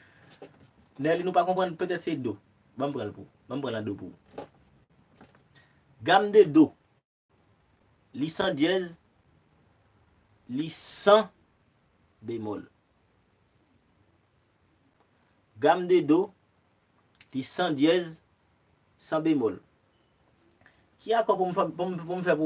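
A young man talks close by with animation, in short bursts with pauses.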